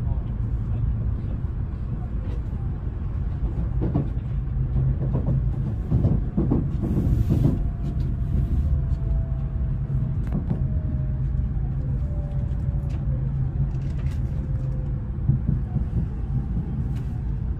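A train rumbles steadily along the tracks from inside a carriage.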